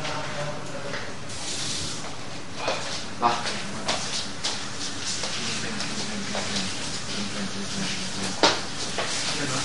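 Young men talk and shout over each other.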